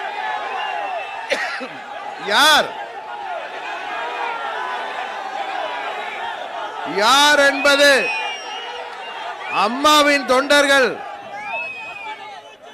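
A middle-aged man speaks forcefully into a microphone over loudspeakers, with bursts of shouting.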